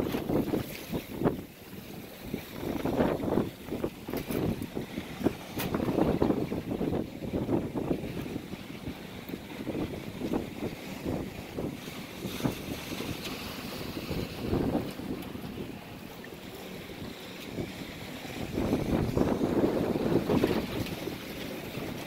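Rough waves slap and splash against a moving boat's hull.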